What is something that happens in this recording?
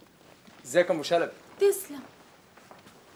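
A middle-aged woman speaks loudly and with distress.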